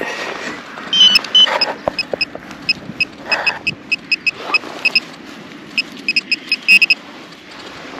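A handheld metal detector beeps in short, rapid pulses.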